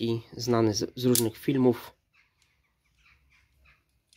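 A folding knife blade clicks open.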